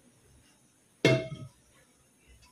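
A metal pan clanks down on a hard surface.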